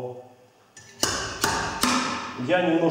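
Metal clanks sharply a few times.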